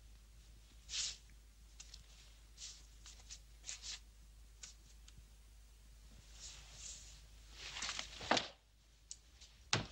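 A cord scrapes and clicks as a man pulls it from the ceiling.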